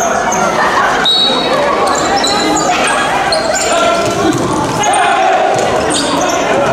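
Players shout and call out to each other in a large echoing hall.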